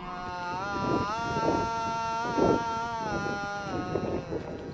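An elderly woman sings long, drawn-out notes close by.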